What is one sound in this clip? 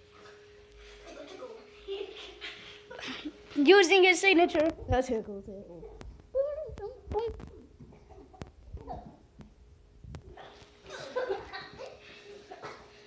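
Children talk excitedly nearby.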